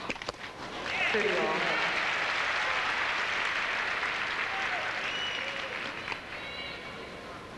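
A large crowd applauds loudly, then the applause fades.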